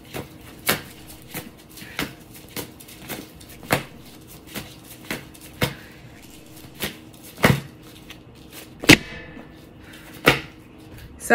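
Cards tap and slap on a hard table.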